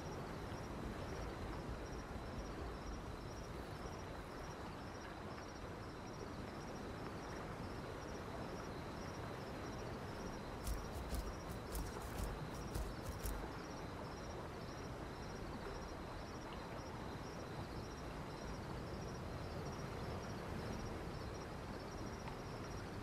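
Wind blows steadily through a forest.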